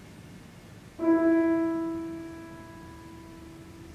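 A piano sounds a single note that rings and fades.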